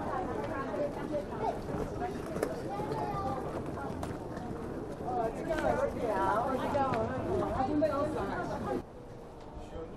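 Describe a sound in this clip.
Suitcase wheels roll across a hard floor.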